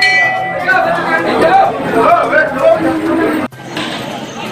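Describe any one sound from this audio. A crowd of women and men chatter and call out close by.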